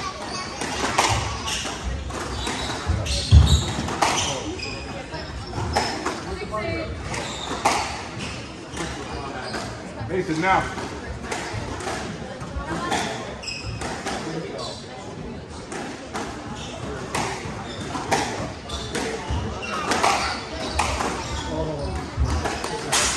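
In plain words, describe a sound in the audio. A squash ball smacks sharply off the walls and rackets in a hard, echoing court.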